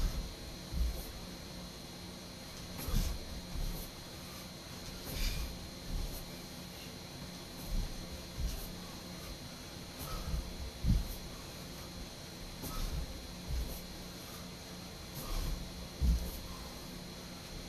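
Feet thud on the floor in a steady rhythm, again and again.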